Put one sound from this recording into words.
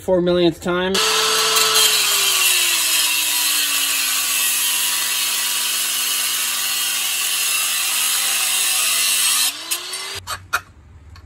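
An angle grinder screams as it grinds metal.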